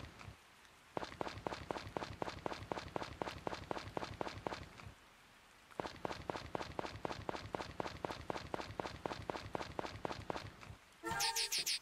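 Quick light footsteps patter steadily on the ground.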